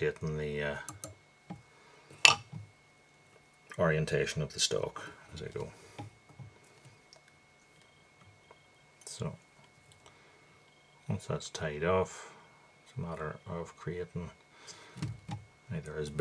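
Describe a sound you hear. A man talks calmly close by, in short phrases with pauses.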